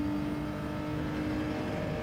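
Tyres rumble over a kerb.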